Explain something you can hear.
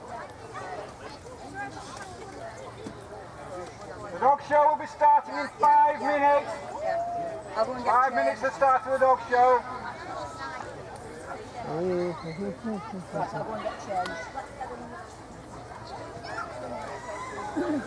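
Adults chat at a distance outdoors.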